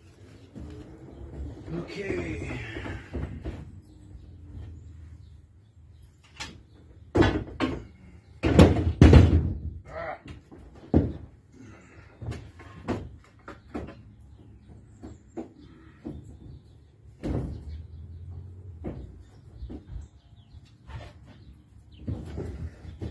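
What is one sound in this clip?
A man talks calmly nearby in a hollow, echoing space.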